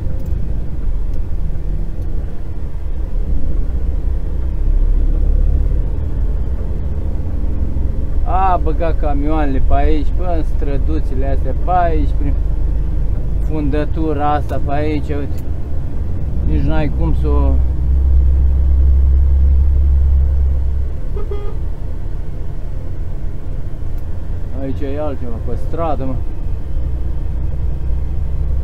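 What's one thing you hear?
A truck engine rumbles low and steadily while driving.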